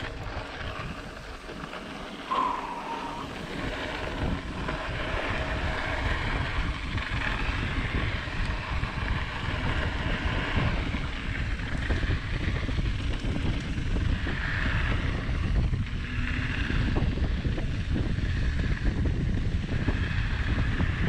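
Wind rushes and buffets past outdoors.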